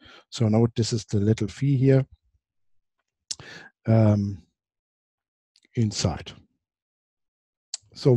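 A man lectures calmly into a close microphone, in short phrases with pauses.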